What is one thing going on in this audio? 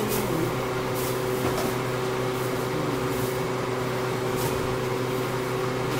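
Dry powder pours softly into a metal pot.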